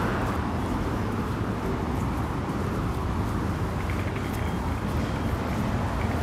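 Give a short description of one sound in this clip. Footsteps of people walking scuff softly on a paved sidewalk.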